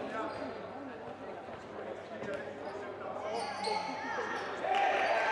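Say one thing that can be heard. Young men call out to each other across an echoing hall.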